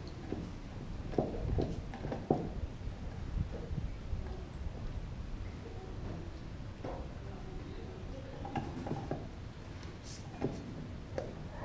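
A dog gnaws and crunches on a bone close by.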